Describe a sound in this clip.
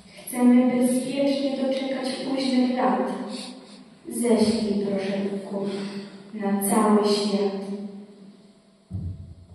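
A girls' choir sings together.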